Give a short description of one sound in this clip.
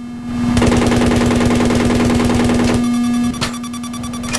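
A helicopter engine whirs loudly and steadily.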